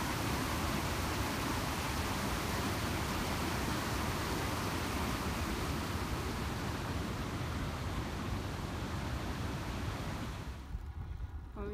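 A river rushes loudly nearby.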